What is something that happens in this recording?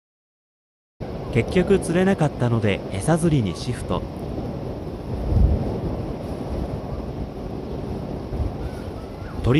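Small waves lap gently against a bank outdoors.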